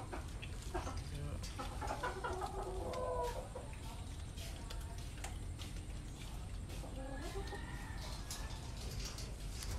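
An animal's claws scrape and rattle against a wire cage as it climbs.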